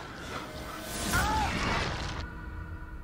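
A creature lets out a loud, snarling roar.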